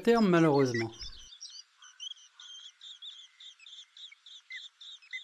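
Blackbird nestlings cheep in thin, high begging calls.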